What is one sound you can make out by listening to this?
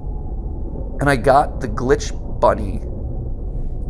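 A man speaks briefly and with animation.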